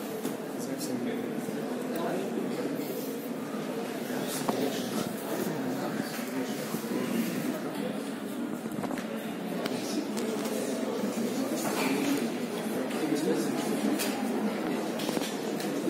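A middle-aged man speaks steadily through a microphone in an echoing hall.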